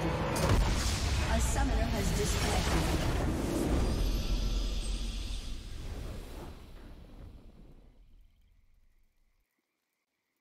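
A triumphant musical fanfare swells and then slowly fades away.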